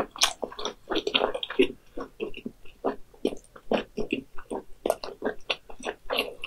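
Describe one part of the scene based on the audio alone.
A young woman chews food loudly and wetly, close to a microphone.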